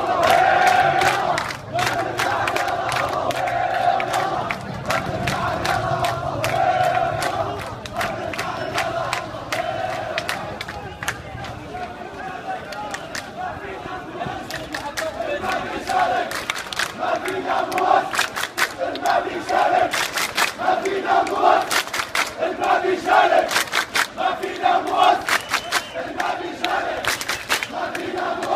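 A large crowd of men chants loudly in rhythm outdoors.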